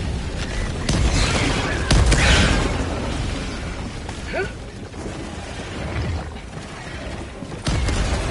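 Large fires roar and crackle.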